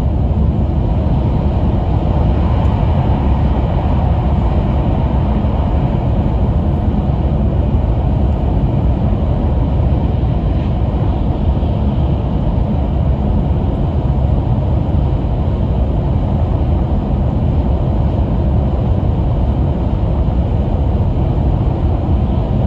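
A train rumbles steadily at speed, heard from inside a carriage.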